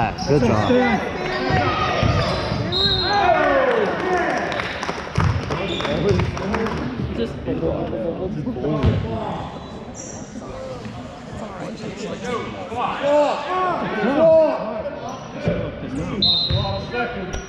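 A crowd of spectators cheers and calls out in a large echoing gym.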